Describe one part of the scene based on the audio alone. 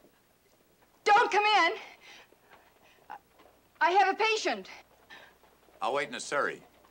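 A woman speaks earnestly, close by.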